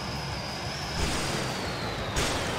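Metal crashes and crunches as a plane smashes into a vehicle.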